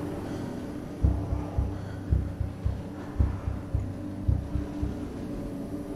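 Footsteps thud heavily on a hard floor.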